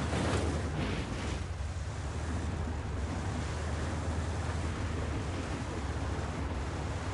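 An armoured vehicle's engine rumbles steadily as it drives.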